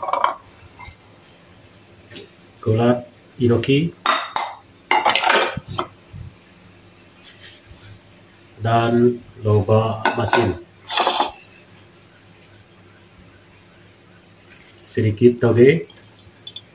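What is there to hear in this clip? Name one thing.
Vegetables drop softly into a metal pan.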